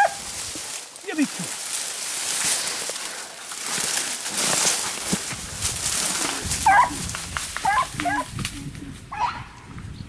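Leaves and branches rustle and snap as someone pushes through dense brush.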